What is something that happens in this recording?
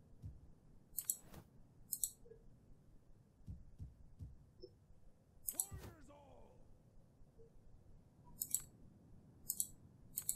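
Short game interface clicks sound as selections are made.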